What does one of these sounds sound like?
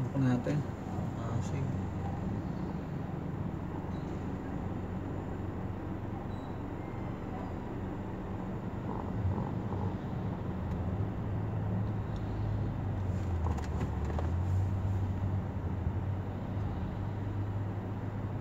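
A jeepney's diesel engine idles nearby with a low, steady rumble.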